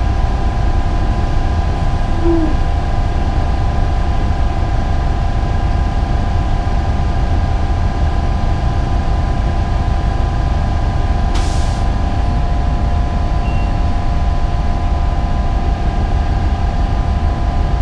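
A bus engine hums steadily inside the moving bus.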